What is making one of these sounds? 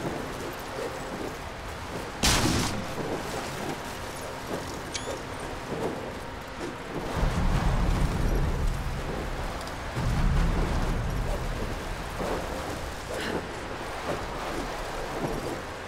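Wooden debris cracks and clatters as it breaks apart.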